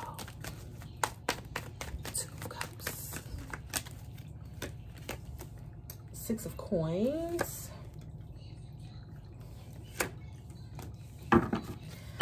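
Playing cards riffle and flick as they are shuffled by hand.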